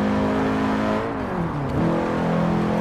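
An engine drops in pitch briefly as a gear changes.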